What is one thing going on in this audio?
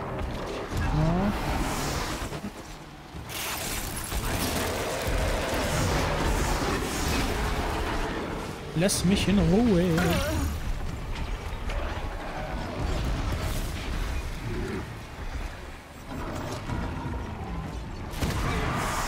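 Wind howls in a snowstorm.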